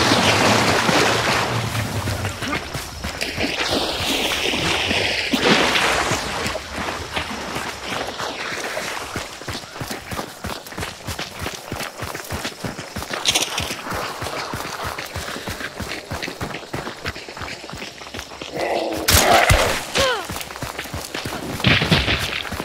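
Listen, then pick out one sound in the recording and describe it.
Footsteps crunch through grass and dry leaves.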